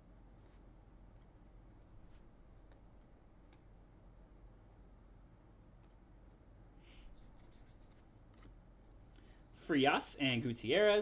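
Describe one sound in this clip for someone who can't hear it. Trading cards rustle and slide as they are shuffled by hand.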